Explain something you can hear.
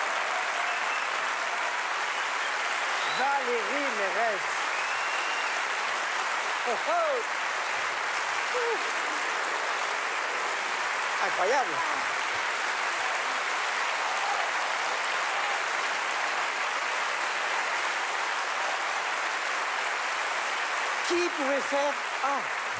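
A large audience applauds steadily in a big echoing hall.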